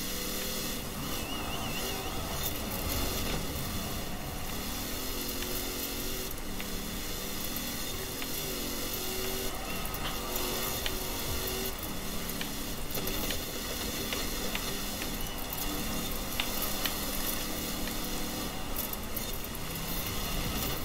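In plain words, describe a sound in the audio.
Tyres hiss on a wet road.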